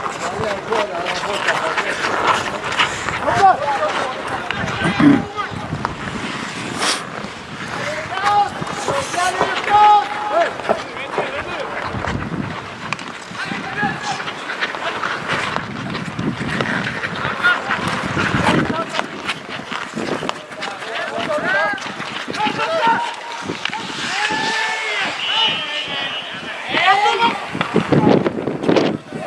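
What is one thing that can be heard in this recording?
Young men shout and call to each other across an open outdoor rink.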